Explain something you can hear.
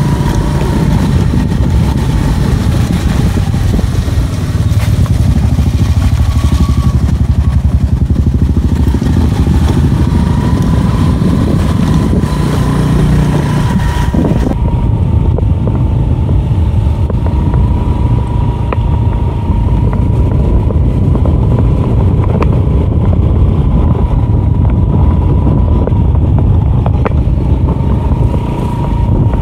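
A vehicle engine drones steadily up close.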